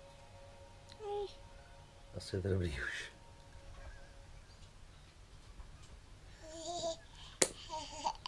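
A baby babbles and coos close by.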